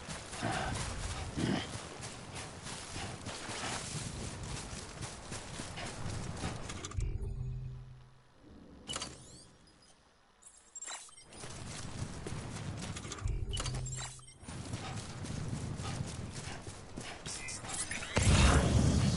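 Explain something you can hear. Footsteps crunch on grass and soil.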